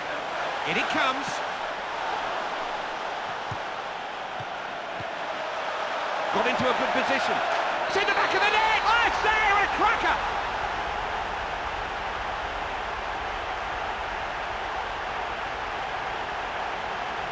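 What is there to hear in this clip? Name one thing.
A large crowd roars and cheers steadily, swelling loudly for a few seconds.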